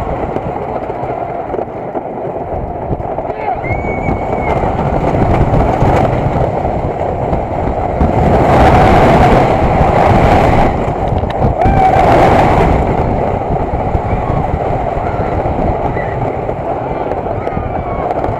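Roller coaster wheels rumble and clatter along a track.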